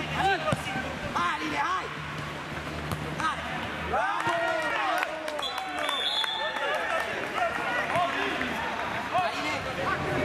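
A football thuds off a player's foot.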